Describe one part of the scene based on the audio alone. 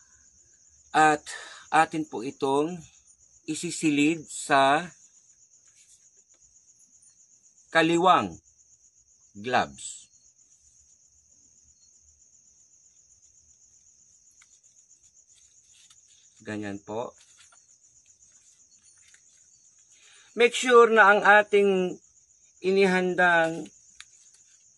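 A man speaks calmly and close to the microphone, in short bursts with pauses.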